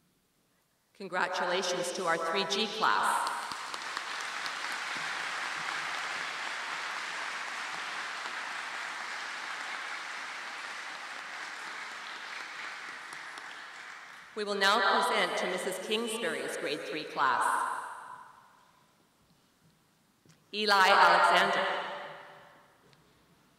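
A woman reads out names through a loudspeaker in a large hall.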